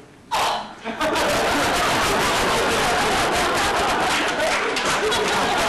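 A young man speaks loudly on a stage, heard from the audience.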